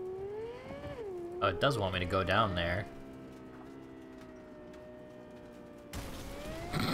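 A car engine revs and whines, rising and falling in pitch.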